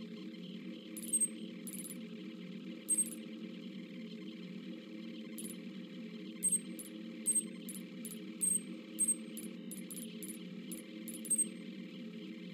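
Short electronic menu ticks sound repeatedly.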